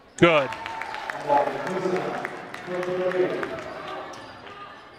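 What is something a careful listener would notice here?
A crowd cheers and claps in a large echoing gym.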